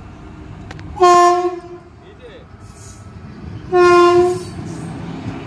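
A locomotive horn blares loudly twice.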